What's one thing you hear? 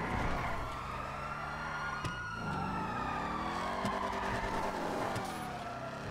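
Car tyres screech on asphalt while skidding.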